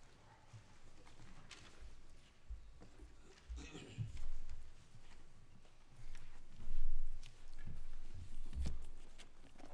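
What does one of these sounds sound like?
Footsteps thud on a carpeted floor.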